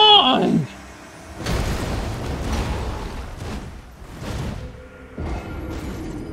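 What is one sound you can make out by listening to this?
Sword blows clang and thud in a game fight.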